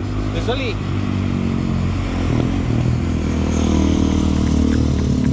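A motorcycle engine rumbles past and revs.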